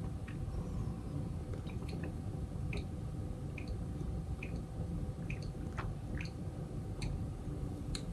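A young man gulps water from a glass.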